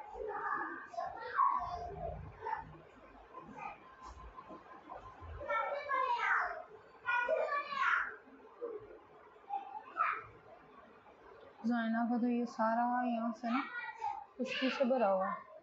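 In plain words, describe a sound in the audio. Fingers rustle softly through long hair.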